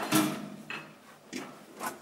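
A metal gate rattles.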